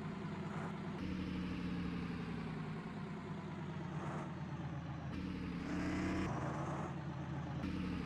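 A diesel bus engine drones while cruising on a road.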